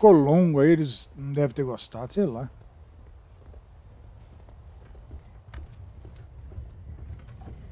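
Footsteps crunch on snow and then thud on wooden steps.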